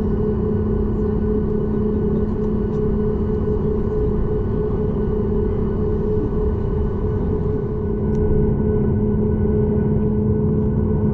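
An airliner rumbles as it rolls along a runway.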